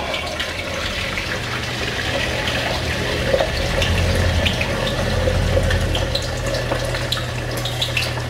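Beaten egg pours into a hot pan.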